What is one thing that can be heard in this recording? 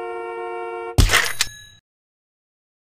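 A short sparkling whoosh sounds as a power-up bursts.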